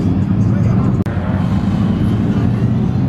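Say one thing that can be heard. A second car engine hums as the car drives away.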